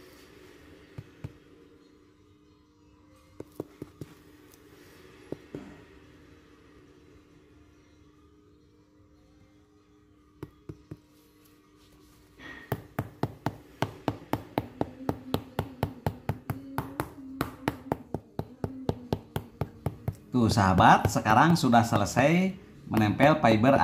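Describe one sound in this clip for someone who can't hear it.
A hammer taps repeatedly on a shoe sole, growing quicker and louder.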